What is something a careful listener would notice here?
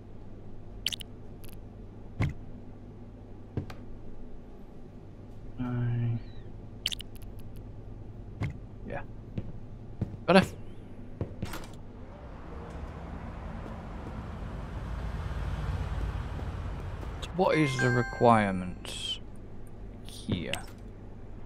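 Short interface clicks tick now and then.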